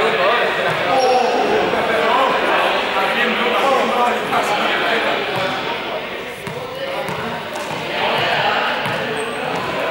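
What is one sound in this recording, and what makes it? A young man talks with animation in a large echoing hall.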